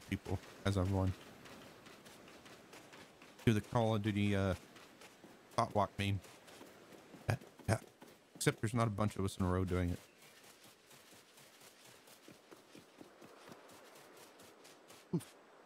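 Footsteps run softly over sand and grass.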